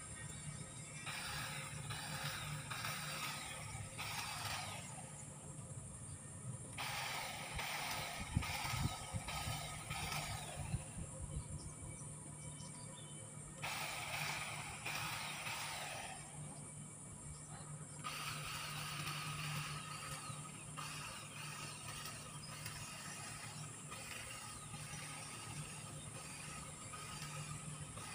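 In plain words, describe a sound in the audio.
Hedge shears snip and rustle through leafy shrubs in short bursts, outdoors.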